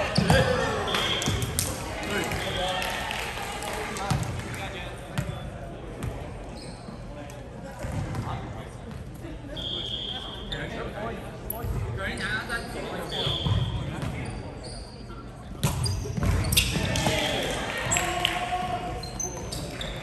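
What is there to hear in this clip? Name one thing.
Volleyballs thump as players hit them in a large echoing gym.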